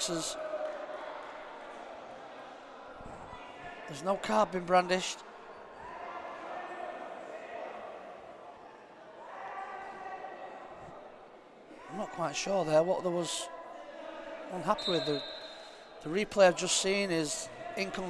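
A crowd murmurs in a large echoing indoor hall.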